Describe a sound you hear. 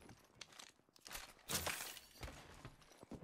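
A gun is handled and reloaded with mechanical clicks.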